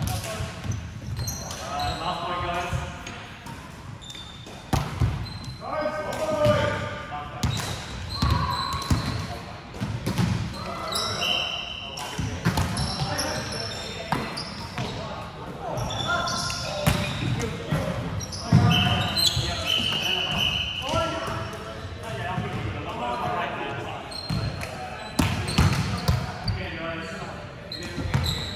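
Sneakers squeak on a wooden court.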